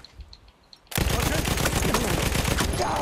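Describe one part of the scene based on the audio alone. A heavy machine gun fires rapidly and loudly.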